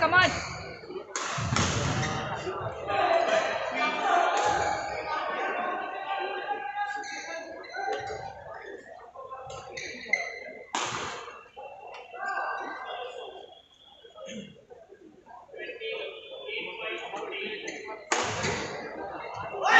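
A badminton racket strikes a shuttlecock in a large echoing hall.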